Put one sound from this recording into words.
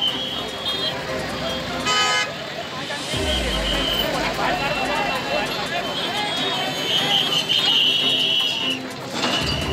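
A crowd of men talk loudly nearby.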